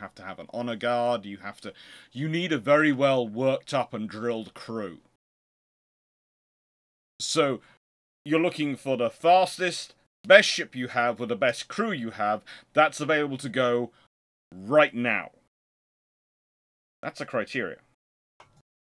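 A man talks with animation close to a microphone, with pauses.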